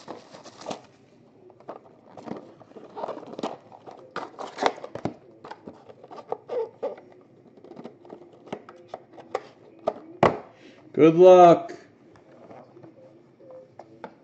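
Cardboard boxes knock and slide as they are handled and stacked.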